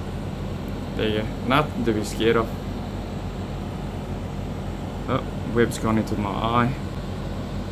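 A man speaks calmly and briefly, close by.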